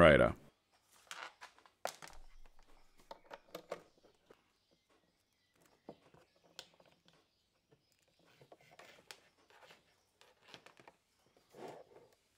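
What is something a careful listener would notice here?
Cables rustle and test clips click as they are handled.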